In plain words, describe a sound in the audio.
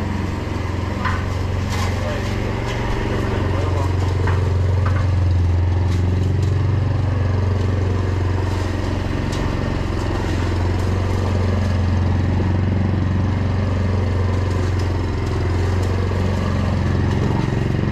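Mower blades cut through grass with a whirring hiss.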